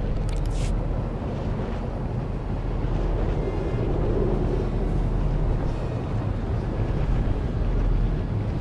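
A hovering speeder engine hums and roars steadily.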